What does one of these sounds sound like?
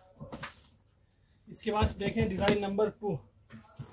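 A cardboard box is set down on a table with a soft knock.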